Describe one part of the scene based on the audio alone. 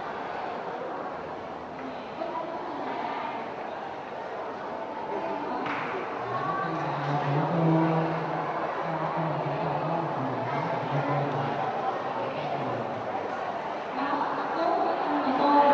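A young woman speaks into a microphone over loudspeakers.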